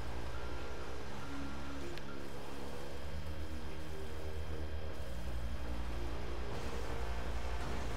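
A heavy truck engine rumbles steadily.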